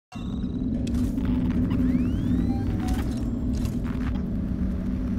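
A motion tracker beeps and chirps.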